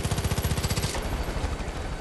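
A helicopter's rotor thumps rapidly overhead.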